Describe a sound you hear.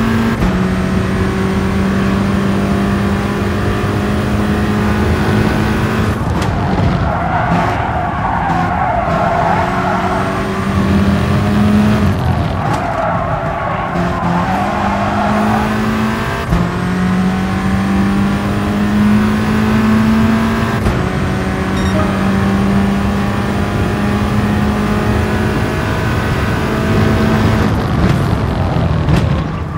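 A racing car engine roars, climbing in pitch and dropping sharply as the gears change.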